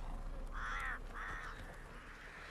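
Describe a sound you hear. A crow caws twice, loud and close.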